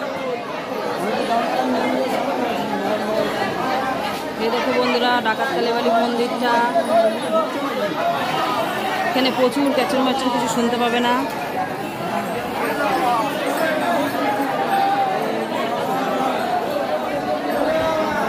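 A crowd of men and women chatter and call out close by, under a roof that echoes.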